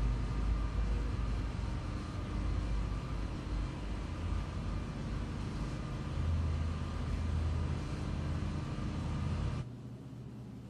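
A lift rumbles and hums steadily, then stops.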